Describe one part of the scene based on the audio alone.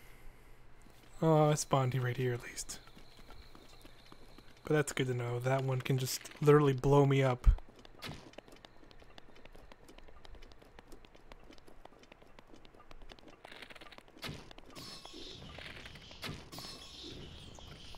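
Footsteps run over grass and stone.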